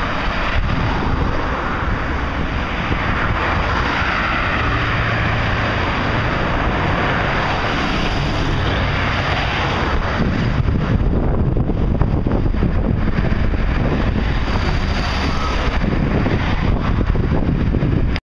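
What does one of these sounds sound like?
Cars and vans drive past on a busy road, their tyres hissing on the asphalt.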